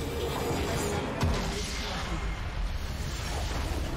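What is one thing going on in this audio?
A game base explodes with a deep rumbling blast.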